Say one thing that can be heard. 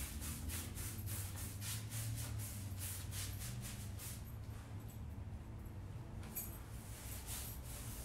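A paintbrush scrapes back and forth on wood.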